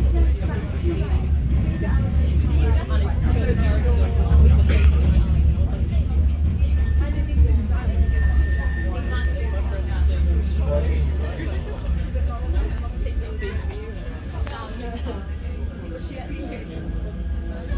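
A tram rumbles steadily as it rolls along the tracks.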